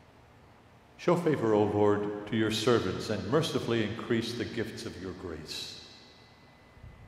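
An elderly man speaks into a microphone in a slow, solemn chant, echoing in a large room.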